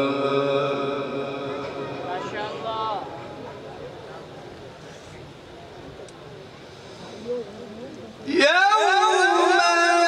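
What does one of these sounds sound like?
A man chants in a long, melodic voice through a microphone.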